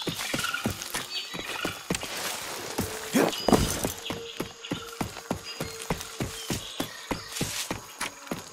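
Footsteps crunch steadily through leaves and undergrowth.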